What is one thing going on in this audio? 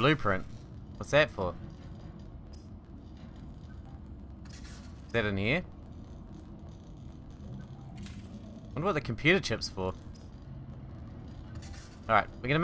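Electric sparks crackle and zap in short bursts.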